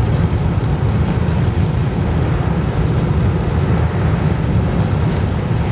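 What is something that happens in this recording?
Wind rumbles low against a moving car.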